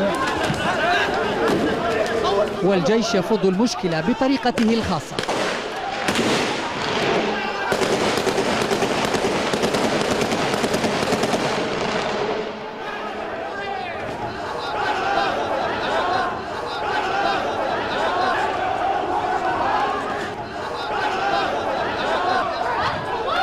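A crowd of men shouts and yells in a large open stadium.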